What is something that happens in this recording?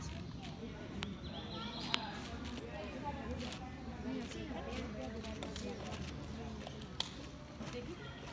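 A bear rustles through leafy undergrowth, snapping twigs.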